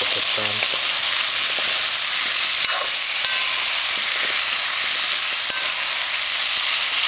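A metal spatula scrapes and stirs food in a pan.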